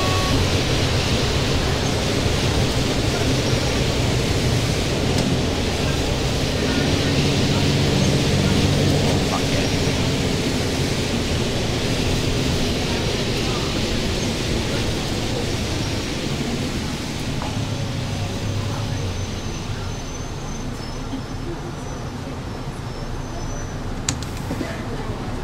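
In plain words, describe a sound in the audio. A bus engine hums steadily as the bus drives along, slowing toward the end.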